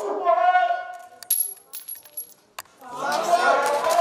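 Wooden blocks clatter onto a concrete floor.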